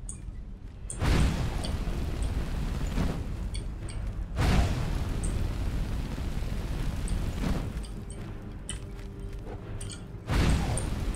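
A fire spell roars in long bursts of rushing flame.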